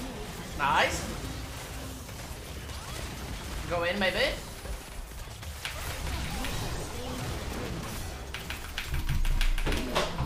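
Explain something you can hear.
Game sound effects of spells and hits play in quick bursts.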